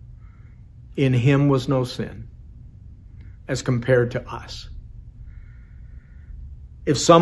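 A middle-aged man speaks calmly and expressively into a microphone close by, in a slightly echoing room.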